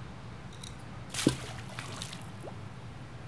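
Water splashes into a pool.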